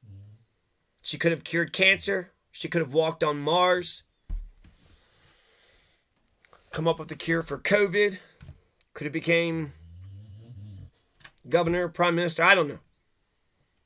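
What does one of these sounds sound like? A middle-aged man speaks calmly and close to a microphone, in short bursts with pauses.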